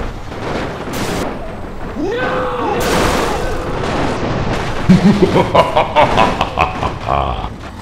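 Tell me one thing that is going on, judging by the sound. A heavy truck crashes and tumbles down rocks.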